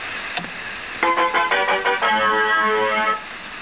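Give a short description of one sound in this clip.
A machine gives out a quick run of electronic beeps and tones.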